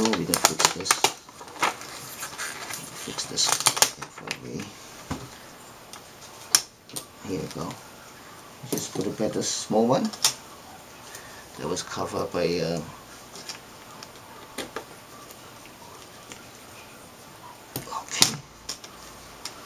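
Gloved hands handle a thin metal panel, with light clicks and rustles.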